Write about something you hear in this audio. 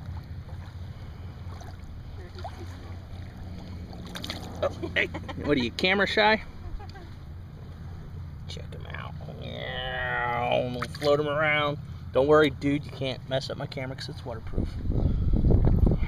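A fish splashes in shallow water.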